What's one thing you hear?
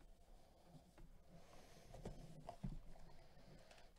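Plastic wrapping crinkles as a card pack is handled.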